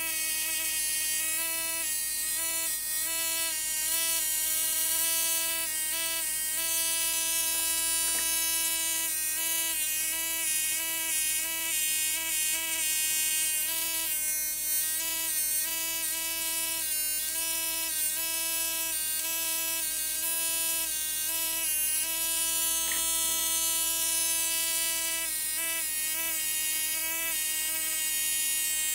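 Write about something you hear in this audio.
An electric spark buzzes and crackles.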